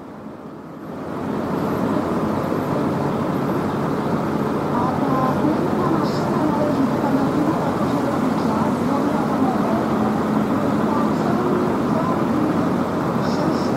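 Tractor engines rumble as a column of tractors drives slowly past.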